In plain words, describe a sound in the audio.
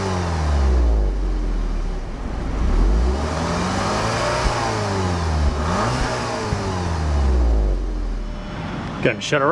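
A car engine revs up and down, roaring through the exhaust.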